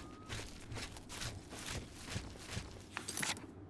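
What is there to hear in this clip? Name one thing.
Footsteps tread steadily through grass.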